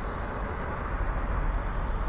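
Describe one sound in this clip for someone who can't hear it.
A van drives by on a wet street.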